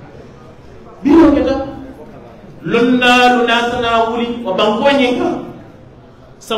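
A man speaks forcefully into a microphone, heard through loudspeakers in a reverberant room.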